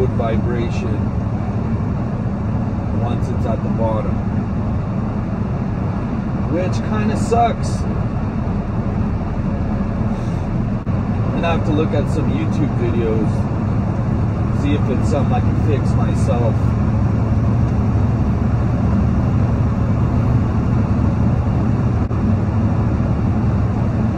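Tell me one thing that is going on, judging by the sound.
Tyres hum on the road.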